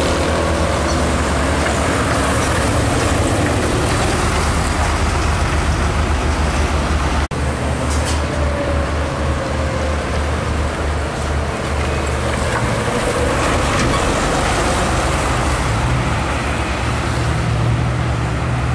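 A heavy truck's diesel engine roars as it labours uphill.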